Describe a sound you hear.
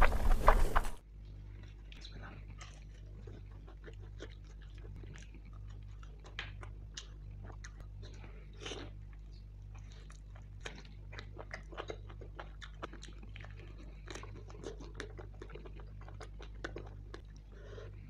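A man chews food wetly close up.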